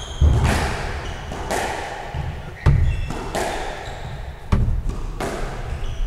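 Sneakers squeak and thud on a wooden floor.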